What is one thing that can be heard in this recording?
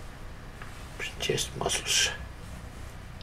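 Small objects knock and clatter on a hard surface close by.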